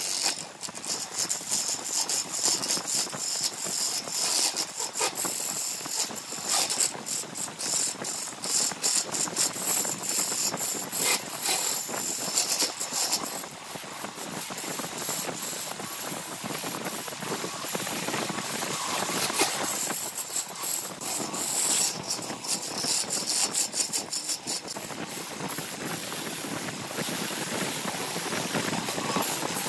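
A gouge scrapes and cuts into wood spinning on a lathe.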